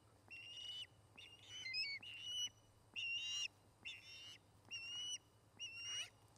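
Birds close by give repeated shrill, whistling cries.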